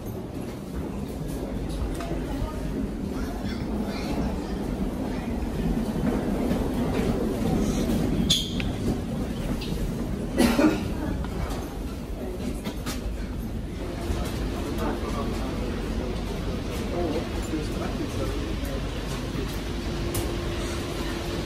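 Footsteps echo.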